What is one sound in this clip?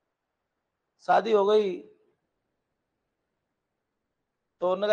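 A middle-aged man speaks clearly into a close microphone, in short phrases with pauses.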